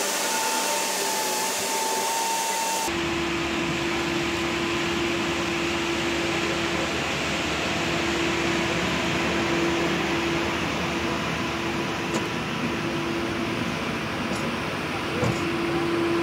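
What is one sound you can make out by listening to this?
A heavy diesel engine roars steadily up close.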